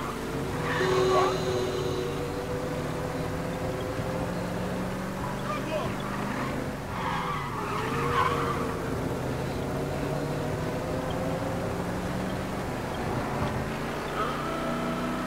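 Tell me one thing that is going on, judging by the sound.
A car engine hums steadily as it drives along a street.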